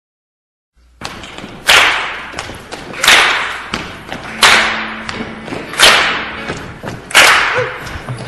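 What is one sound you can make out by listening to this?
A live band plays music in a large echoing hall.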